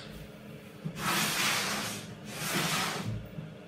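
A wooden cabinet scrapes across a table.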